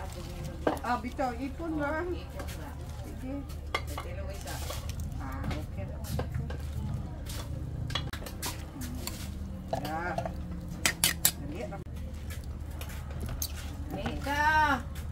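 Soup simmers and bubbles in a pot.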